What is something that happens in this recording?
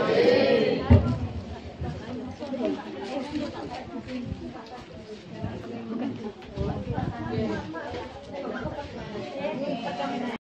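A crowd of people murmurs in the background.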